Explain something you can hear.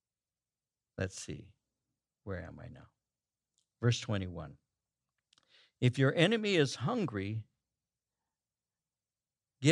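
An elderly man speaks calmly and slowly into a microphone, with pauses between phrases.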